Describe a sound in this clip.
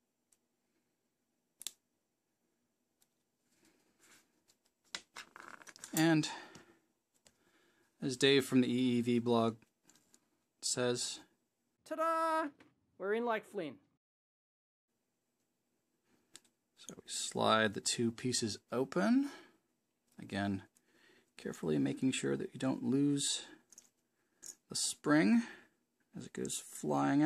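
Small plastic parts click softly as they are fitted together by hand.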